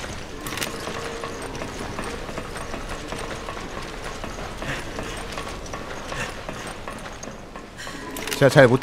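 Heavy boots clank on metal stairs and grating.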